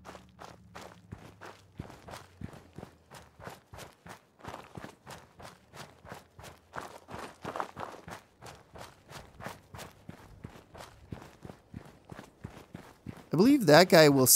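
Footsteps crunch steadily over dry grass and dirt.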